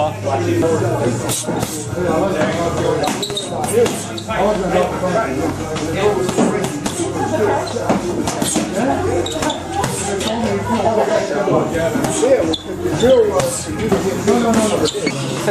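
Gloved fists thump a heavy punching bag.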